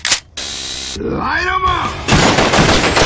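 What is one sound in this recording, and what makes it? A man shouts with excitement.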